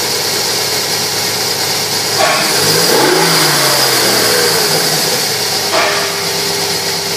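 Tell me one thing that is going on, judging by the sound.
An engine idles with a steady whir and hiss.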